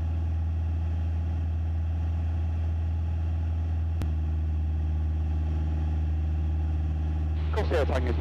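A single-engine light aircraft's piston engine drones in flight.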